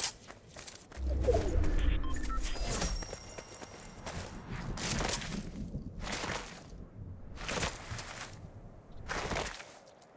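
Quick footsteps patter over grass and dirt.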